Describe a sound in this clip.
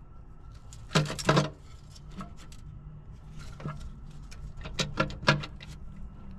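Metal parts clink sharply close by.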